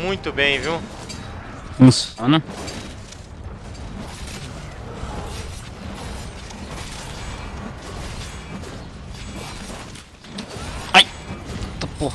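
Heavy blows crash and thud against a large creature.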